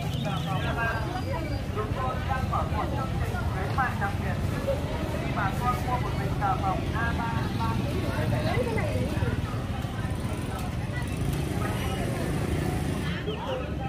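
Women talk with animation nearby.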